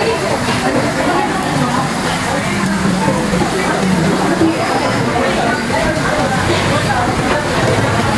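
Many people chatter around the listener in a busy, noisy room.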